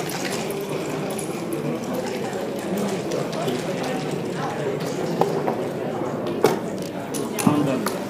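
Plastic checkers click on a wooden board.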